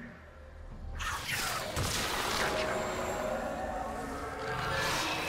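Magic spell effects whoosh and crackle in a fast fight.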